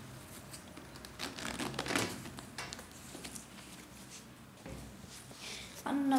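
A zipper is pulled open on a suede boot.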